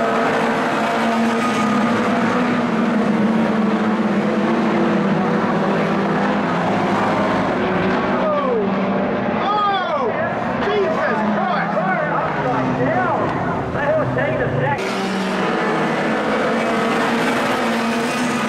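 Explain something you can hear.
Race car engines roar and rev loudly around a dirt track.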